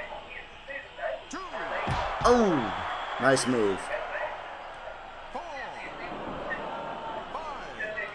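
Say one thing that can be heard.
A crowd cheers and roars steadily.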